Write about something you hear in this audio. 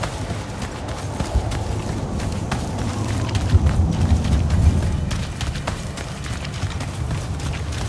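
Footsteps crunch on gravel and dirt at a steady walking pace.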